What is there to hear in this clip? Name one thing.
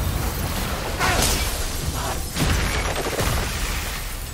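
A magical energy blast whooshes and crackles.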